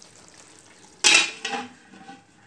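A metal lid clanks down onto a pot.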